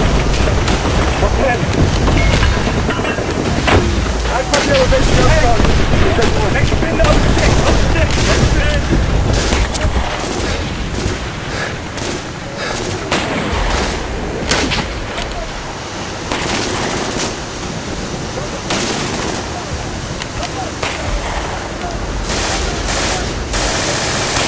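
Sea water splashes around soldiers wading toward a beach.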